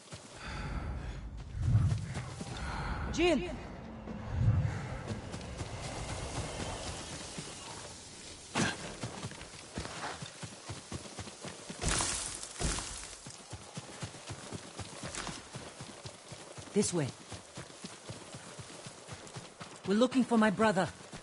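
Footsteps rush through tall grass.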